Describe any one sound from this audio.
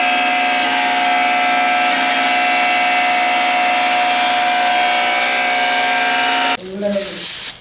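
A machine hums and whines steadily, then stops abruptly.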